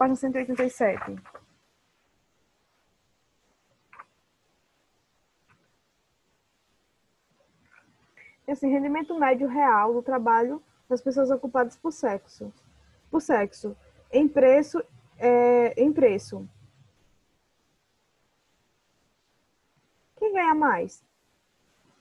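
A young girl speaks calmly over an online call, in short bursts with pauses.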